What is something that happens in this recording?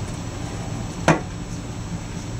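A plastic lid thumps shut.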